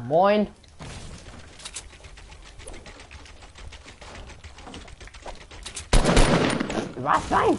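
Wooden building pieces snap into place with quick knocks.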